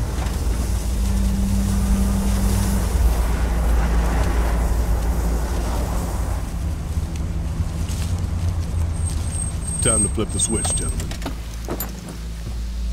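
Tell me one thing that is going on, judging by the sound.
A vehicle engine rumbles low and steady while driving over rough ground.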